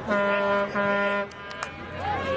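A referee's whistle blows a long steady blast.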